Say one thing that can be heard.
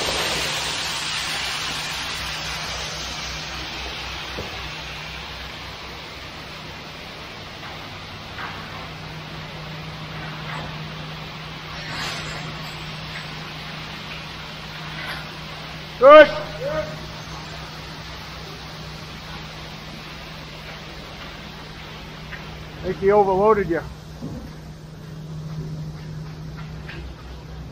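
Wet concrete slides and pours down a metal chute.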